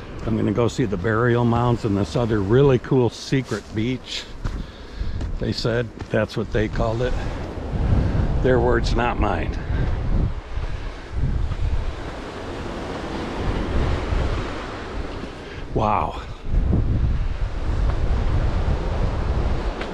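Footsteps crunch on a stony dirt path.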